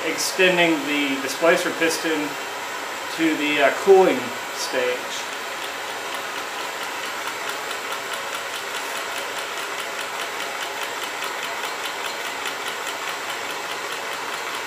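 A gas torch flame hisses steadily.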